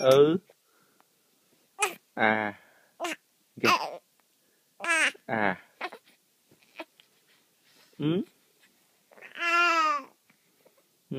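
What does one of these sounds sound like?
A baby coos and squeals with laughter close by.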